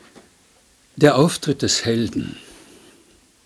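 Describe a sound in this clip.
An elderly man reads aloud into a microphone.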